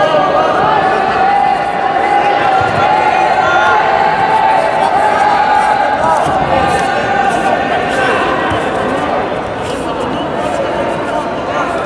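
A crowd of spectators shouts and calls out in a large echoing hall.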